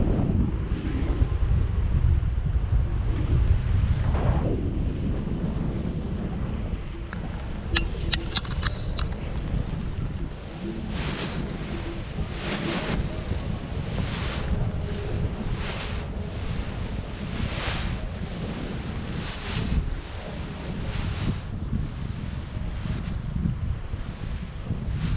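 Wind rushes and buffets loudly against a close microphone outdoors.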